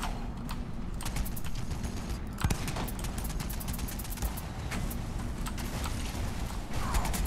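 Rapid gunfire rattles and cracks.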